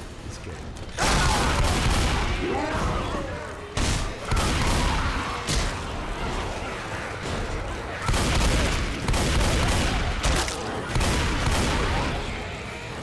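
A shotgun fires loud, booming blasts, each followed by a short ringing tail.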